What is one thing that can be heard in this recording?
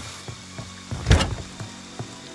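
A door bangs open with a thud.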